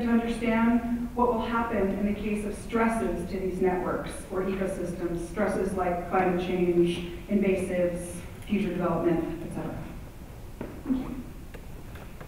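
A middle-aged woman reads out calmly through a microphone in a large hall.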